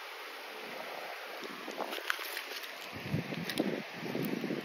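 Shells click and scrape as a hand picks them up from wet sand.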